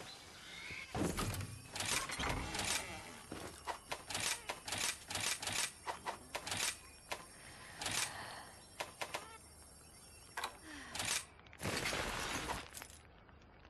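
Short menu clicks and beeps sound rapidly as selections change.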